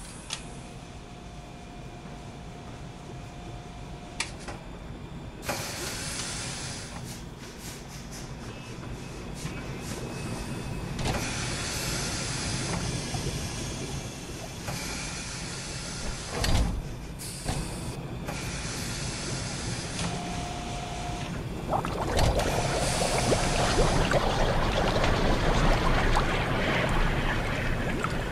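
A low mechanical hum drones steadily.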